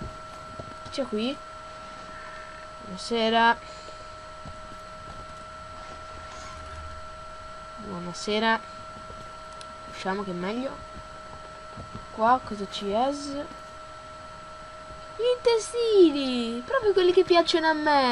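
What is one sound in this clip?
A boy talks in short bursts close to a microphone.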